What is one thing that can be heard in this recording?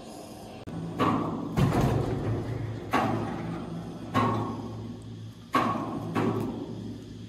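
Metal clamps clunk heavily against a large log.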